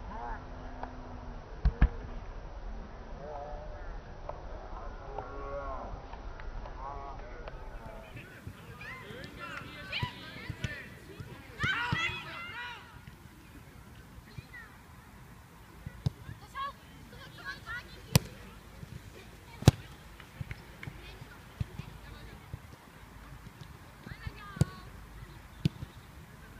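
Young players shout to each other outdoors across an open field.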